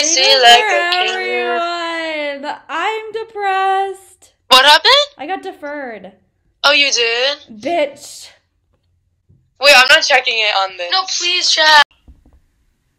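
A young woman talks cheerfully, close to the microphone.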